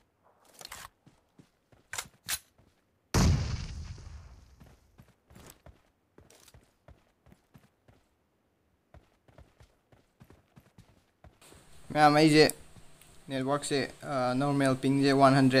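Footsteps scuff softly over rocky ground.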